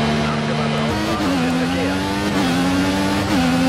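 A racing car engine revs up sharply and climbs through gears.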